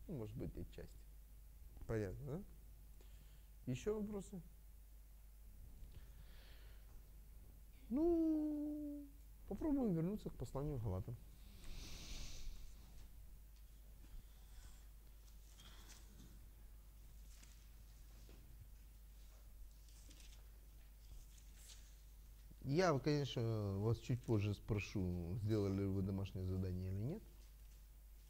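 A middle-aged man speaks expressively in bursts, with long pauses.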